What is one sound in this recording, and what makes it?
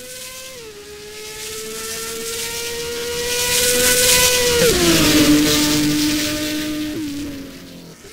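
A racing car engine roars as it approaches, passes close by and fades away.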